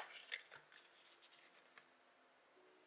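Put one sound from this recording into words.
Hands set plastic cases down on a table with light taps.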